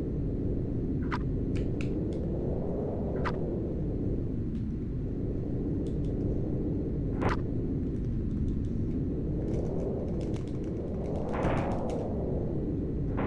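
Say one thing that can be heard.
Low electronic game music drones with a slowly wavering pitch.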